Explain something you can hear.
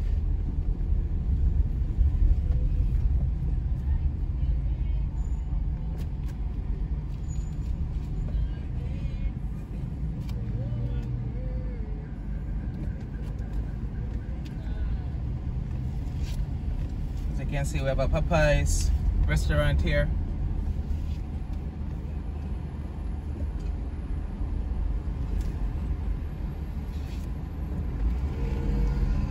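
A car engine hums and tyres roll steadily on the road from inside a moving car.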